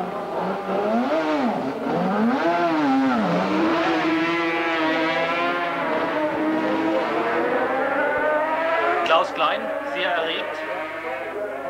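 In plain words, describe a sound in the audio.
A motorcycle engine revs up and down nearby.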